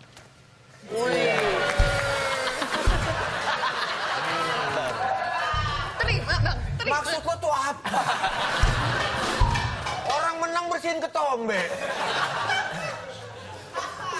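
A group of people laugh and cheer.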